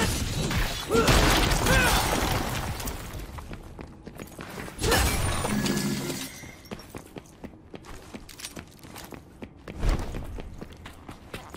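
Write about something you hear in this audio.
Footsteps thud quickly across hard ground.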